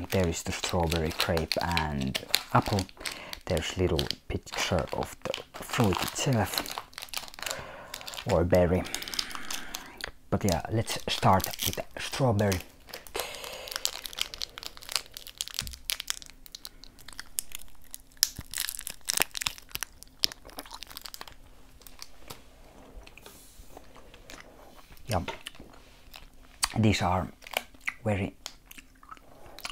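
Plastic candy wrappers crinkle and rustle as hands handle them.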